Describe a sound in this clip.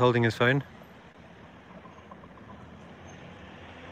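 A car drives slowly along a street.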